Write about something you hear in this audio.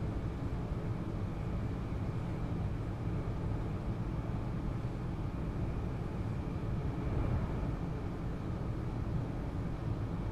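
A train rumbles steadily along the rails from inside the cab.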